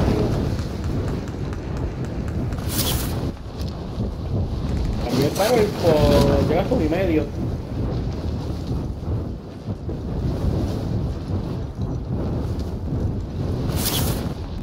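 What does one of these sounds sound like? Wind rushes loudly past during a fast fall through the air.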